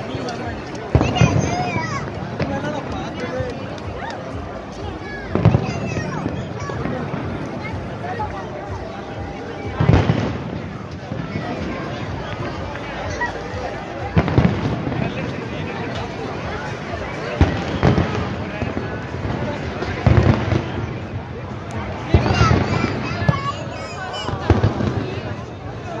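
Fireworks boom loudly overhead at intervals.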